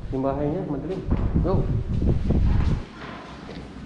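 Fabric rustles and brushes close by.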